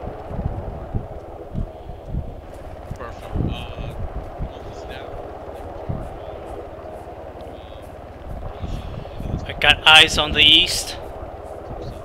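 Footsteps tread steadily through grass and dirt.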